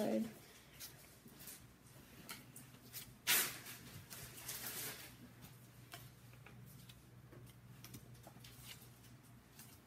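Trading cards rustle and flick as they are handled close by.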